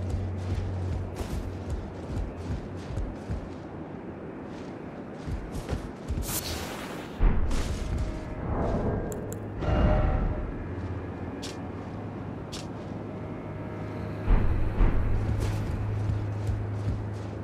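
Armoured footsteps clomp up wooden stairs.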